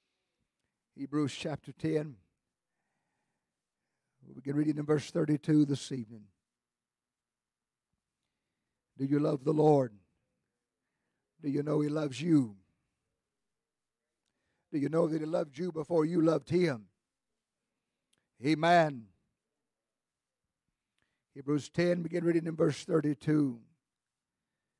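A middle-aged man speaks fervently in short bursts through a microphone, with pauses between phrases.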